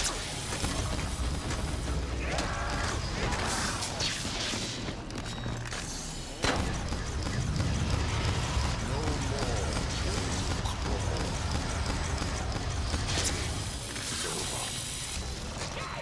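Electric bolts crackle.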